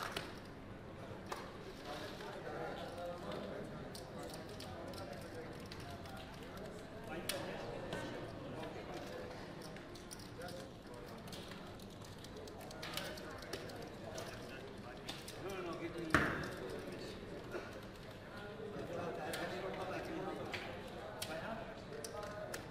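Plastic chips click and clatter as they are stacked and slid across a table.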